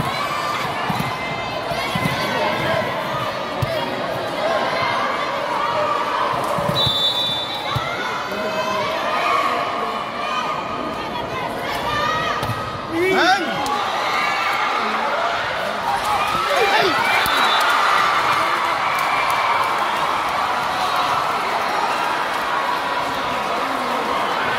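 Young women players shout to each other on the court.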